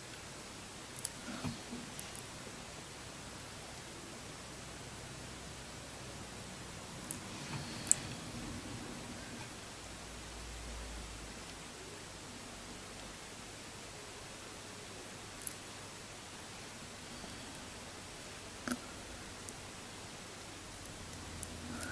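A metal eyelash curler clicks softly now and then close by.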